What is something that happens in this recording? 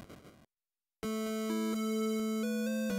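Simple electronic game music begins to play.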